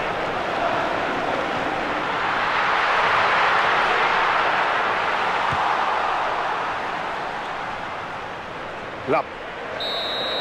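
A stadium crowd roars steadily, swelling and then slowly fading.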